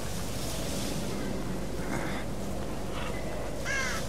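A crow caws.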